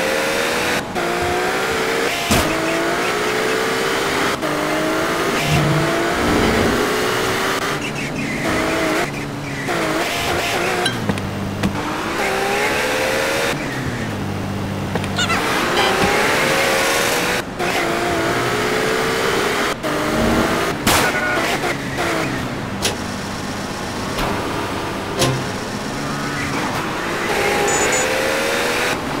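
A car engine revs up and down, rising in pitch again and again.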